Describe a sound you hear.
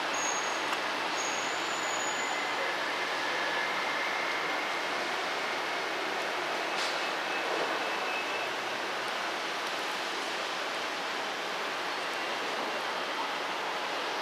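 A passenger train rumbles along the tracks and slowly moves away.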